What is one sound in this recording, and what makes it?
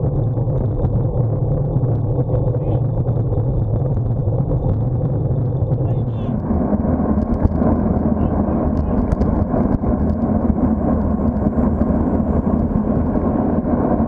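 Wind rumbles steadily against a moving motorcycle.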